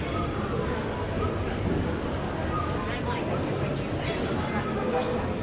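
Indistinct chatter and footsteps echo through a large indoor hall.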